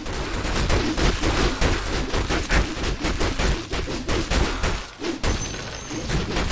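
Game characters clash in battle with rapid hits and crackling spell effects.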